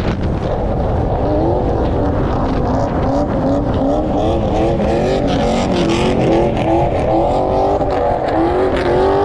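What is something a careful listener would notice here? A car engine revs up repeatedly as it accelerates.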